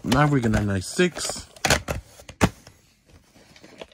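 A hand lays a plastic case down on a soft surface with a light thud.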